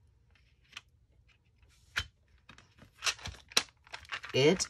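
A plastic palette lid snaps shut with a click.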